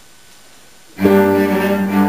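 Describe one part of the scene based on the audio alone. A piano starts to play along with the cellos.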